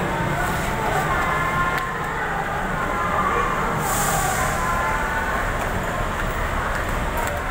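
Footsteps tread down concrete stairs.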